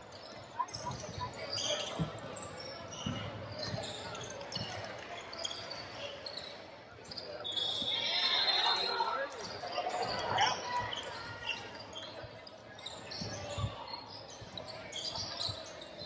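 Voices echo around a large indoor gym.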